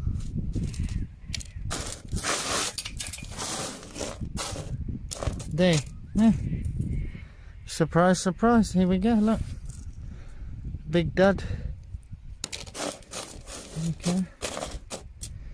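Small stones rattle and scrape as a hand stirs through gravel.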